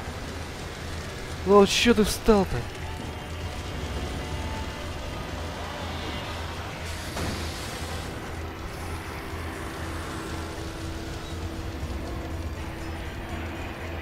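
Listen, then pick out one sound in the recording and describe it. Footsteps crunch on rubble.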